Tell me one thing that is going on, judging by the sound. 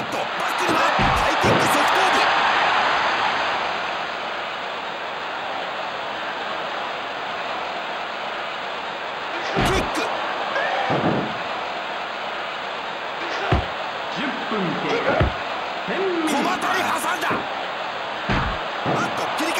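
Heavy thuds of bodies hitting a wrestling mat ring out now and then.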